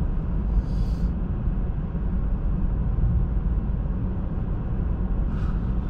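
Tyres roar steadily on a wet road.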